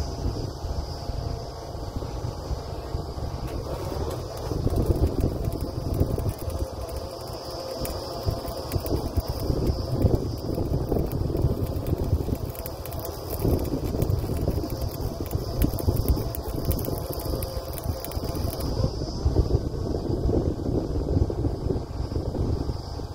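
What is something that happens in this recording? A drilling rig's engine roars steadily and loudly nearby.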